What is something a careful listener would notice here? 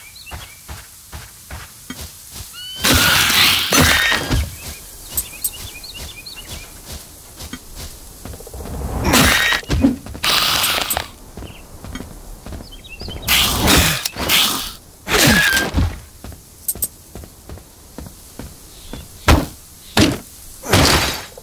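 Footsteps tread on grass and leaves.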